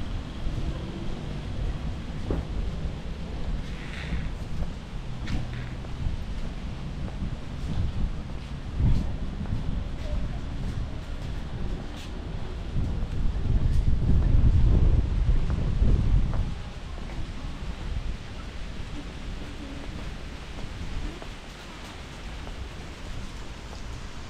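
Wind blows outdoors, rumbling and gusting.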